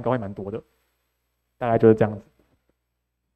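A young man speaks into a microphone over loudspeakers.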